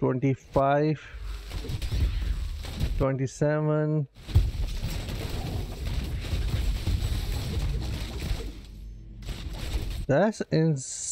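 Magic blasts and heavy hits rumble and crackle in a fierce fight.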